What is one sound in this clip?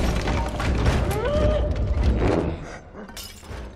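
Heavy footsteps thud on wooden floorboards.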